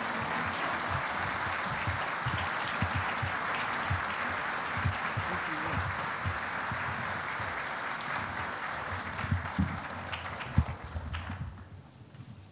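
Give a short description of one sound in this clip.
A large crowd applauds loudly in a big echoing hall, then stops.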